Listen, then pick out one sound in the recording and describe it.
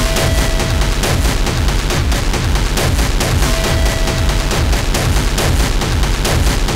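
Electronic music with deep thumping bass drums and rapid clicks plays loudly throughout.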